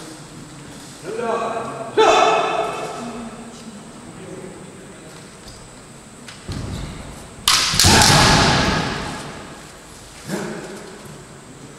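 Fencers shout loudly with sharp cries.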